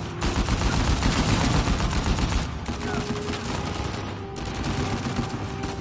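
Gunfire rattles in rapid bursts, echoing in a large hall.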